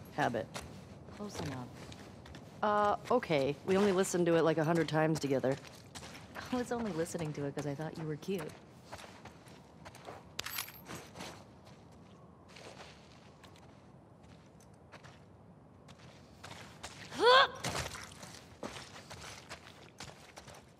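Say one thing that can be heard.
Footsteps walk slowly across a floor.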